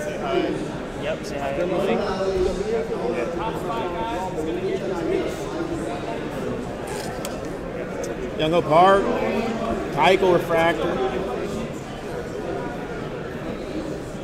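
Trading cards rustle and slide as hands flip through them.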